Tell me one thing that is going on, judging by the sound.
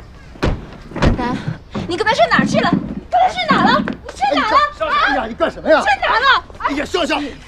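A young woman asks questions anxiously, close by.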